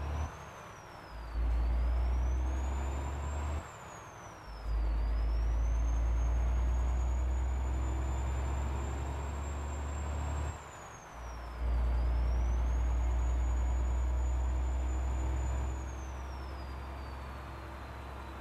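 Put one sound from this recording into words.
A truck engine drones steadily and rises in pitch as it speeds up, dropping briefly at each gear change.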